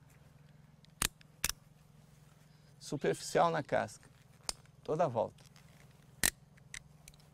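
Pruning shears snip a branch.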